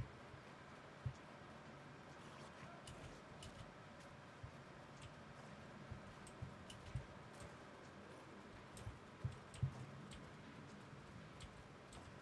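Light footsteps patter quickly over dry ground.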